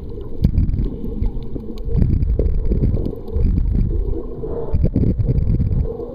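A swimmer's arms splash and churn the water overhead.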